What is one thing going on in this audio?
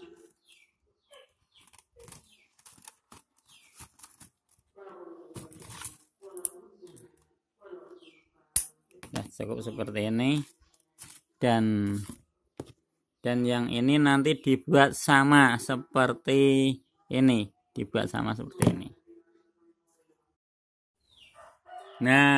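Thin copper wire rustles and clinks as hands handle it.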